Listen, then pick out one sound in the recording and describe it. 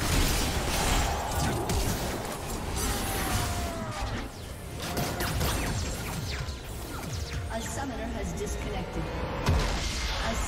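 Game spells crackle and clash in a busy fight.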